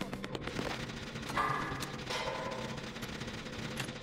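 A machine rattles and clanks as it is being repaired.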